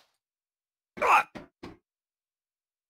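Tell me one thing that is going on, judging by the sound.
Boots land with heavy thuds on a hollow metal roof.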